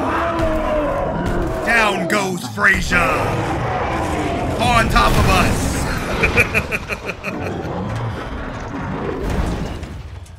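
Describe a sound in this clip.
Heavy bodies crash and thud.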